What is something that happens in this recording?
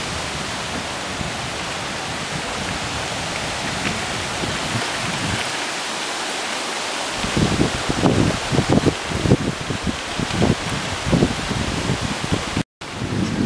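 A river rushes nearby.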